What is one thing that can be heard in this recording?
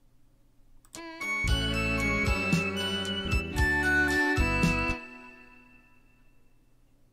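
A short electronic keyboard melody plays loudly, then rings out.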